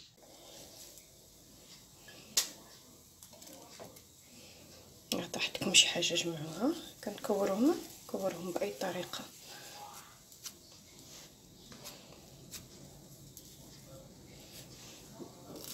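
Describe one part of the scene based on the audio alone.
Hands pat and press soft dough.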